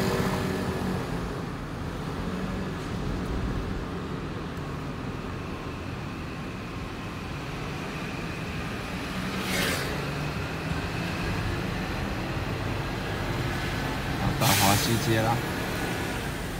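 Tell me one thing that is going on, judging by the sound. A vehicle's engine hums steadily as it drives along a street.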